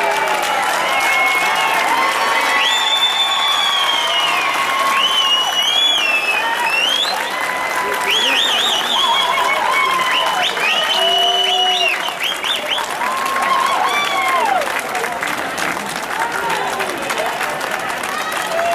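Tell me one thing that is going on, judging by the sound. Fireworks whistle shrilly, rising and wavering in pitch.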